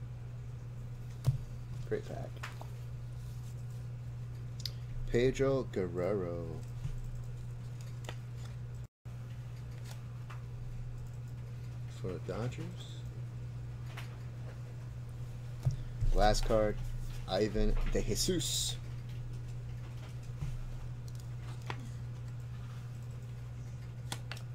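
Plastic sleeves crinkle and rustle as cards are handled.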